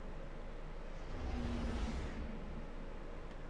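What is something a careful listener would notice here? A spaceship whooshes past with a deep rumbling roar.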